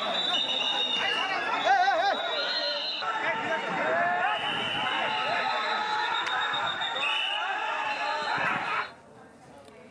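A large crowd shouts and chants outdoors.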